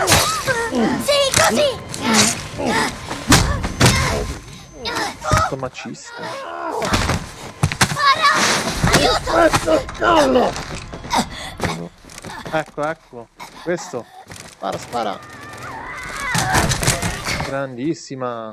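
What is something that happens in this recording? Sharp thuds and blows land in a fight.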